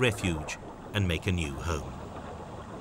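A scuba diver breathes out underwater, with bubbles gurgling and rumbling in bursts.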